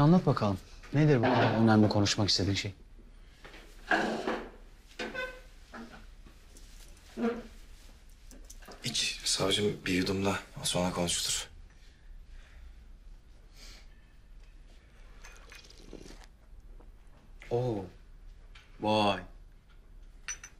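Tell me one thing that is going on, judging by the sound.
A second man answers in a low, serious voice.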